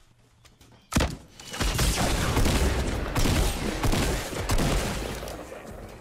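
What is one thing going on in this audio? Gunshots fire rapidly in a game.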